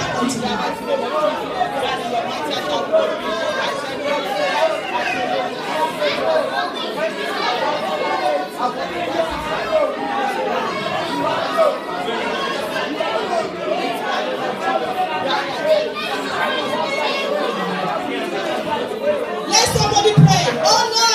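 A young woman sings through a microphone over loudspeakers.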